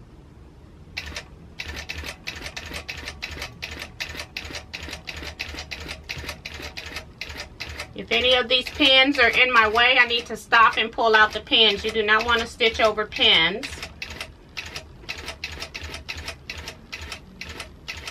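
A sewing machine stitches with a fast, steady clatter.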